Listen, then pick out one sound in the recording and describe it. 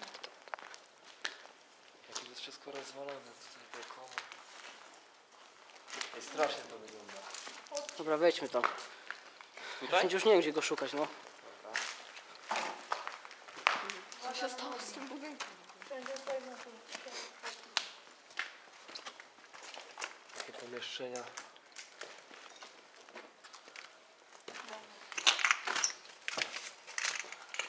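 Footsteps crunch on rubble.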